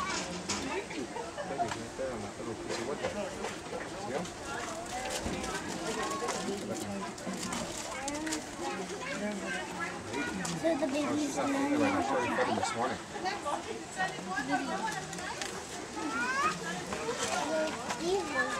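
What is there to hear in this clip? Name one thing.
Monkeys rustle and shift about on dry branches.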